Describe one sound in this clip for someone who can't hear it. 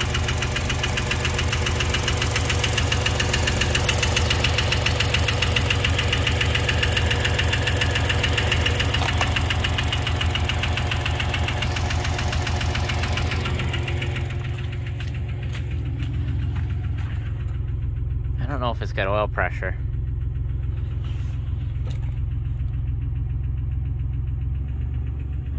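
An engine hums low and steady.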